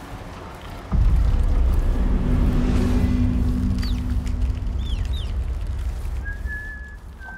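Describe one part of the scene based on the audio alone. A mechanical walker rumbles and whirs close by.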